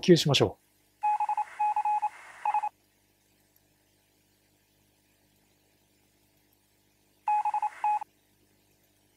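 A telegraph key beeps in quick short bursts.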